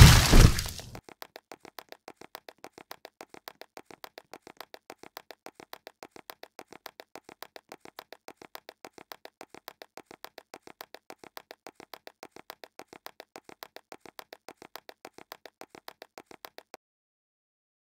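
Footsteps patter quickly and faintly on a hard floor.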